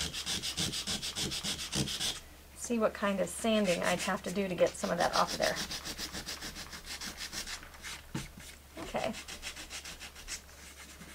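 A sponge dabs rapidly and rhythmically against a hard surface.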